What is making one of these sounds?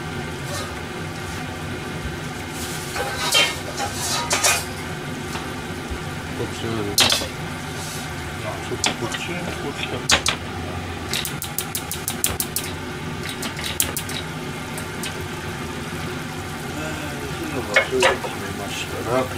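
Food sizzles and simmers steadily in pans.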